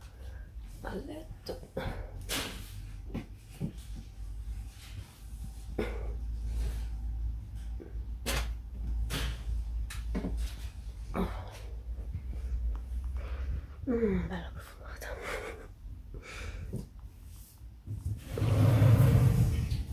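Fabric rustles as folded clothes are handled.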